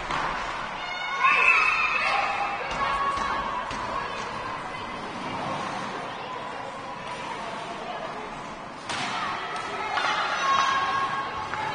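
Children shout across an echoing ice rink.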